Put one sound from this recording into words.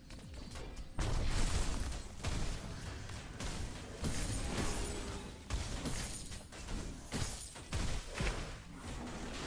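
Blows and impacts thud in quick succession.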